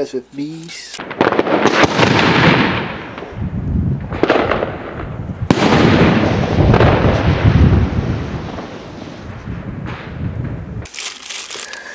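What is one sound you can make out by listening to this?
Fireworks burst with loud booms and crackling outdoors.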